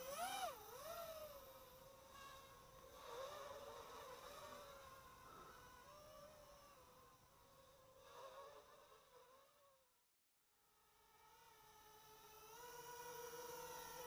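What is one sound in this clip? A drone's motors whine overhead, rising and falling in pitch as it moves.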